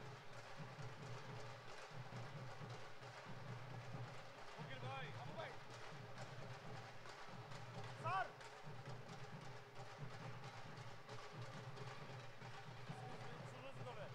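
Hand drums beat in a lively rhythm.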